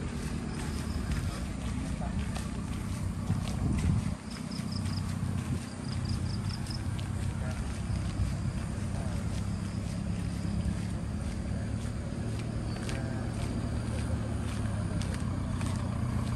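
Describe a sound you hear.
Footsteps scuff on a paved path.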